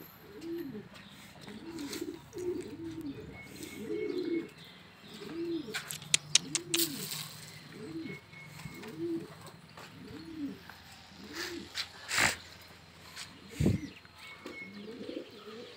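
Pigeons coo softly and repeatedly nearby.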